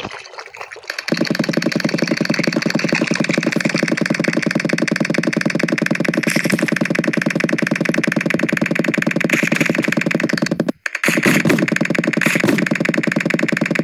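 A paint gun sprays with a fast, steady rattling hiss.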